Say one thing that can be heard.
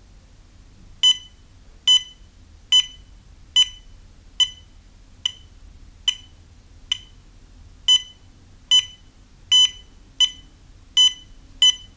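A pulse meter beeps short and high with each heartbeat.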